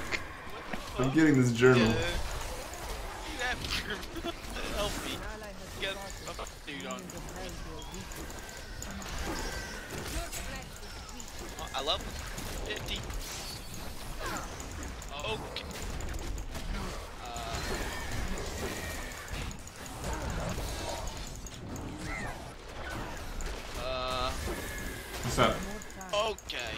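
Game spells blast and crackle with magic effects.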